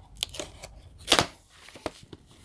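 A plastic case knocks as it is set down on a table.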